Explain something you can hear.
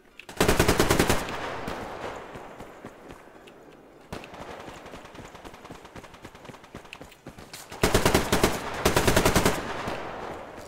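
A rifle fires rapid bursts that echo loudly and fade.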